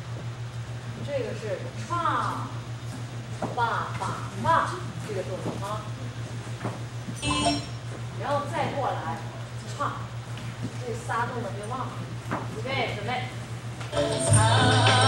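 Young women talk and call out together in an echoing room.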